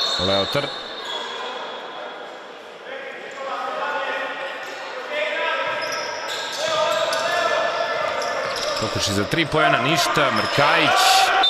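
Sneakers squeak sharply on a hard court in an echoing gym.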